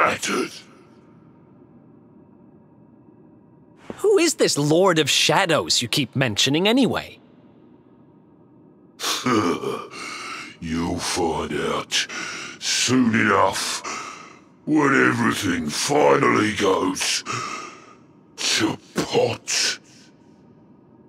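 A deep, gravelly male voice groans and speaks in a strained, menacing way.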